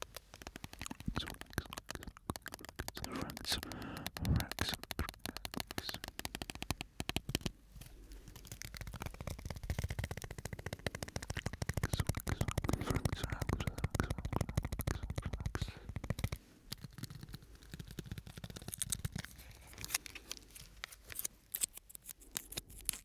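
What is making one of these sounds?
Plastic wrapping crinkles and crackles close to a microphone.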